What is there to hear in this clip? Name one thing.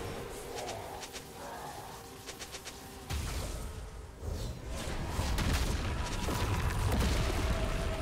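Game weapons clash with sharp hits.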